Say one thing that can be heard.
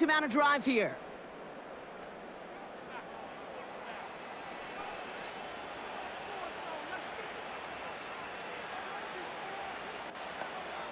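A large crowd murmurs steadily in the distance.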